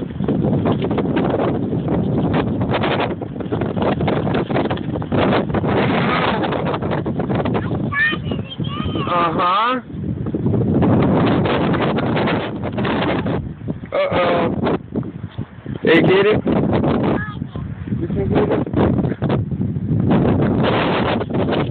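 Wind blows hard against the microphone outdoors.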